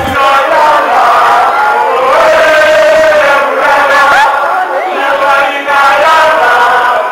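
A crowd of men chants and sings loudly in a large echoing hall.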